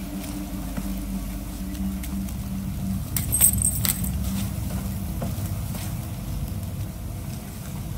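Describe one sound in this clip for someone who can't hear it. A fire crackles and pops close by.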